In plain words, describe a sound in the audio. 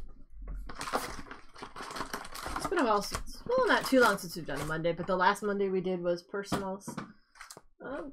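Foil card packs rustle and clatter as they are lifted out of a cardboard box.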